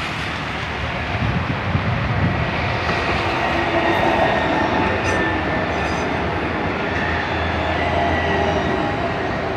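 An electric tram rolls close by on rails, its motors humming.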